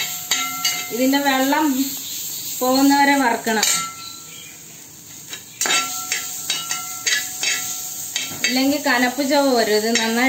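A metal spoon scrapes and taps against a metal pan.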